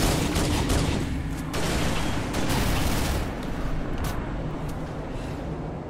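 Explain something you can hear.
A spacecraft roars past overhead.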